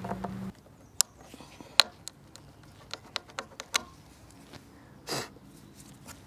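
Wooden knobs knock and clack against a cabinet.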